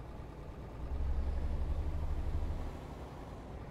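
A truck engine revs up as the truck pulls away.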